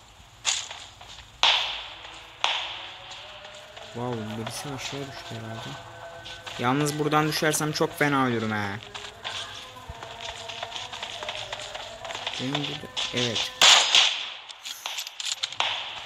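Footsteps crunch quickly over rocky ground.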